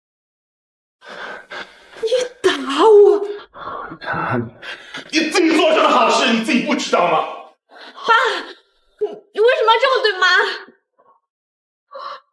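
A middle-aged woman shouts in shock and outrage.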